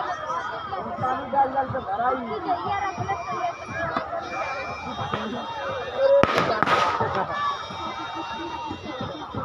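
A crowd of women chatter nearby, outdoors.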